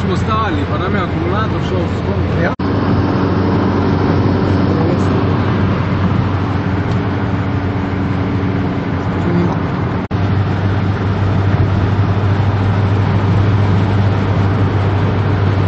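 A car engine hums and tyres roar steadily on a highway.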